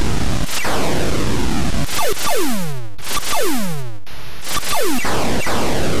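Electronic laser shots zap repeatedly with quickly falling pitch.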